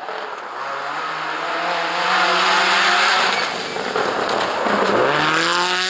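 Tyres hiss and spray snow as a car slides past.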